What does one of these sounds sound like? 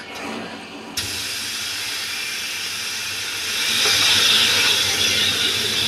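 Electricity crackles and hisses loudly.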